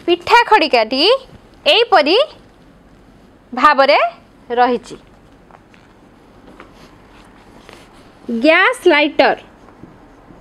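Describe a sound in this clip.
A young woman speaks clearly and calmly close to a microphone, in short phrases with pauses.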